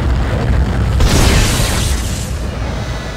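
A loud blast bursts nearby.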